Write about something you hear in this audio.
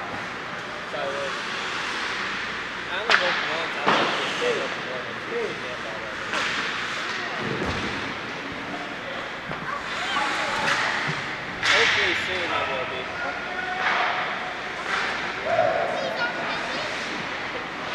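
Young men shout to each other in a large echoing rink.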